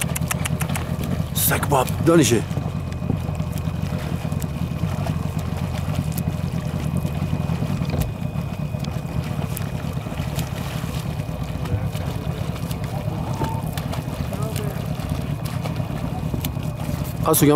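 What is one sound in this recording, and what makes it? A swimmer's arms splash rhythmically through calm water.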